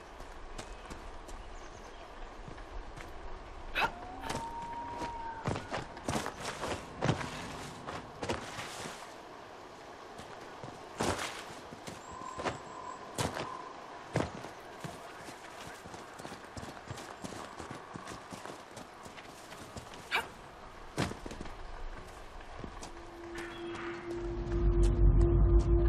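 Footsteps crunch over rocks and gravel.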